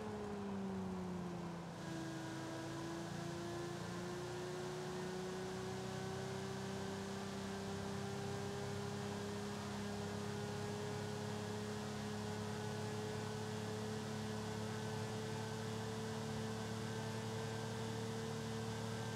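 A sports car engine drones steadily, dips briefly at a gear change, then slowly climbs in pitch.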